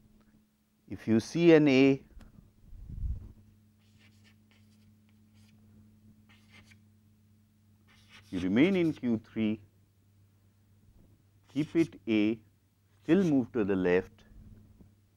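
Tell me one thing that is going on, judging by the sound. A man lectures calmly through a microphone, in short phrases with pauses.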